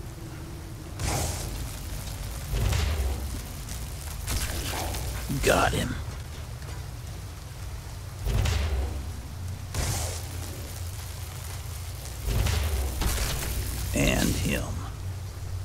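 Magic bolts crackle and burst loudly in short blasts.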